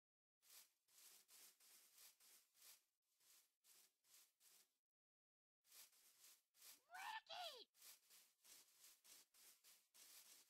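Footsteps tread steadily on grass.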